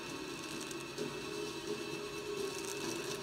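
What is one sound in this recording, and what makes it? Ice axes chip into ice.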